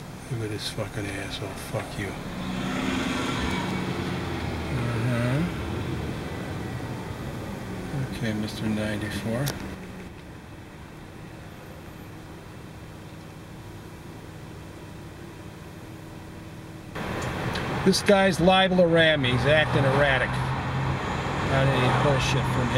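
A bus engine rumbles close by.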